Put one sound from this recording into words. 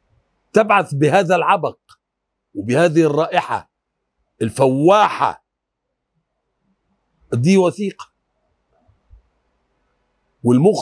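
An elderly man speaks expressively into a close microphone, in short bursts with pauses.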